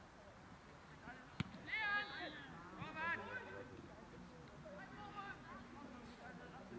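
Men shout to each other across an open field, at a distance.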